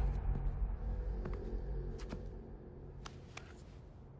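A finger taps on a phone touchscreen.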